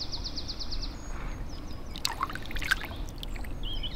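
Water splashes as a fish is released.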